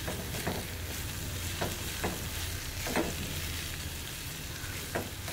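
A spatula scrapes and taps against a metal pan.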